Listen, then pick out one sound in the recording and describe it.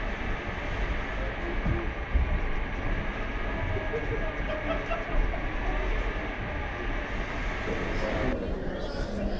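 Sea water rushes and churns below.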